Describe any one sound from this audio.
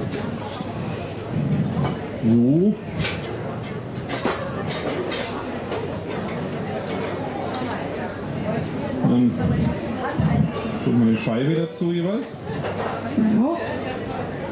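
Kitchen utensils clink and clatter.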